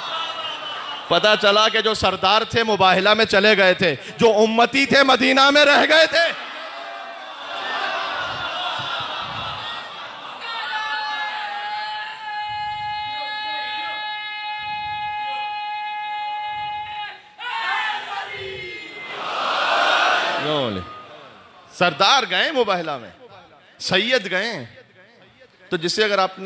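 A man speaks passionately into a microphone over loudspeakers in an echoing hall.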